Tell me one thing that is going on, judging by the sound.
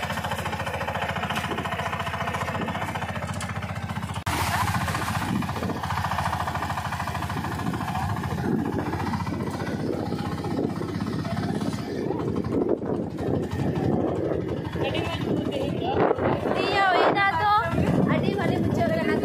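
An auto-rickshaw engine putters steadily while driving.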